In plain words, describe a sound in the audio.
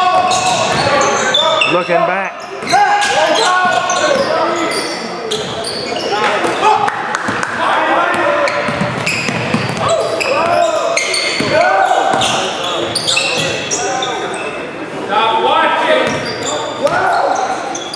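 Spectators talk and call out in the background.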